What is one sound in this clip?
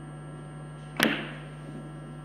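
A cue tip strikes a billiard ball with a sharp click.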